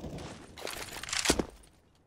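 A rifle clicks and rattles as it is handled.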